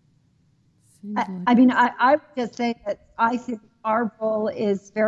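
A middle-aged woman speaks with animation over an online call.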